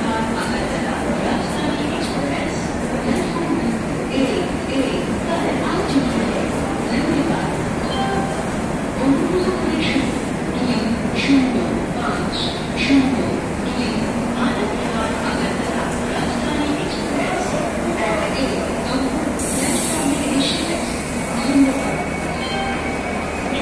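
A train rolls slowly past with a steady rumble.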